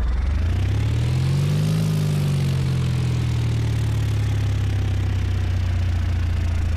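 A propeller engine drones steadily, its pitch rising briefly and then settling.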